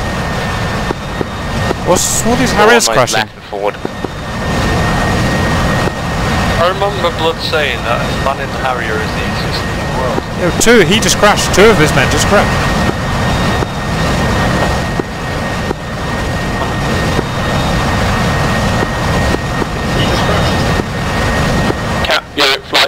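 A jet engine roars steadily close by.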